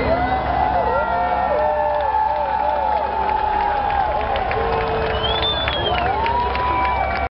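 Loud live music with a heavy bass booms through speakers in a large hall.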